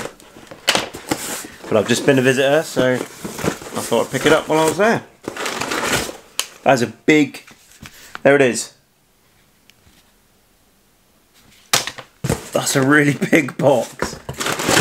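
Cardboard rustles and scrapes as a box is handled.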